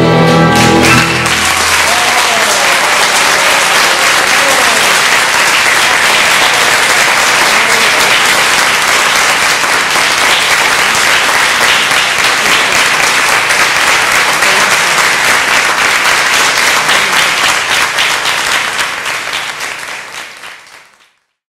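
An audience applauds loudly and at length in a hall, fading out at the end.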